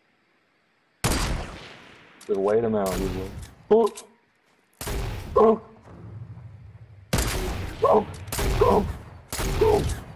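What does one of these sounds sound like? Loud rifle shots crack one after another, each trailing off in a ringing echo.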